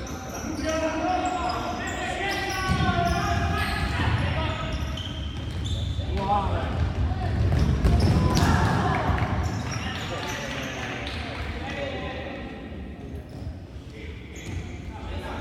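Players' shoes squeak on a hard court in a large echoing hall.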